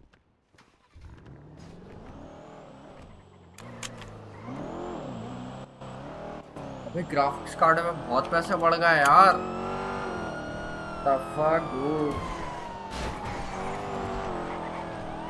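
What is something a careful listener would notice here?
A car engine hums and revs as a car drives off.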